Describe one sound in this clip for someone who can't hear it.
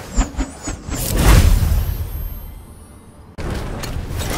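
A magical whoosh swells and fades.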